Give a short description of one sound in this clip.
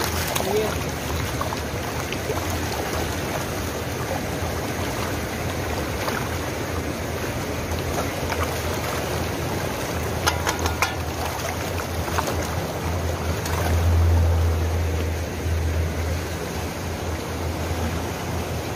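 Water flows and splashes steadily.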